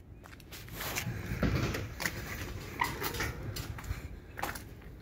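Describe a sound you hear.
A metal side panel creaks and swings open.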